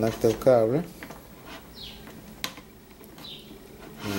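A plug clicks into a socket.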